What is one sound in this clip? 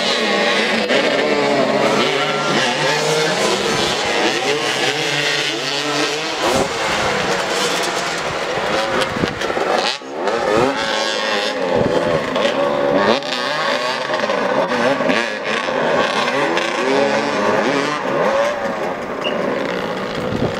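Several motorcycle engines rev and whine as the riders race about.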